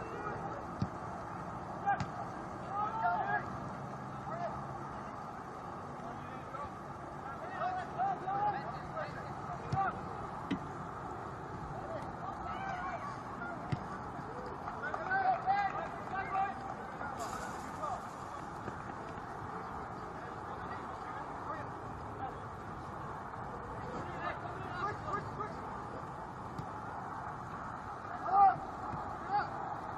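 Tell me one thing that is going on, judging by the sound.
Young players shout and call out to each other in the distance outdoors.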